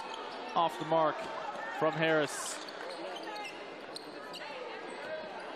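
Shoes squeak on a hard court floor.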